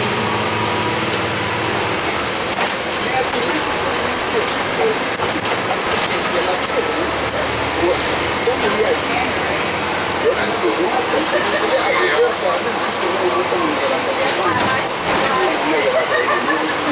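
Loose panels rattle and clink inside a moving bus.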